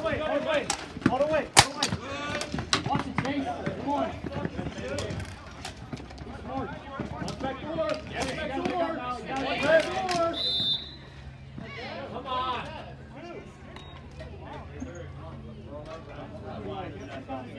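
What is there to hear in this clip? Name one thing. Young players shout and call out to each other outdoors.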